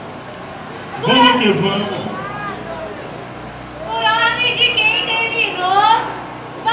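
A young man raps loudly into a microphone through a loudspeaker.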